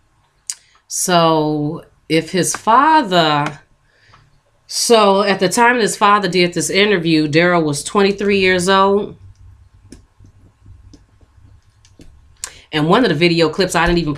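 A young woman talks calmly and close into a microphone.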